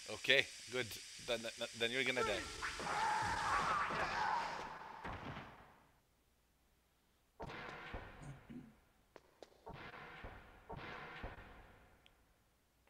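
A video game's sound effects play.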